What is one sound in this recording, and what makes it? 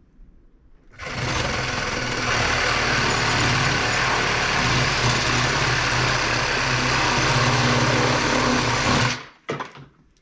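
A small rotary tool whirs steadily as it grinds wood.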